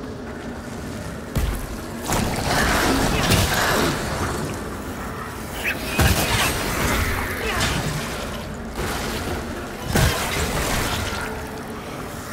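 Magic bursts crackle and hiss.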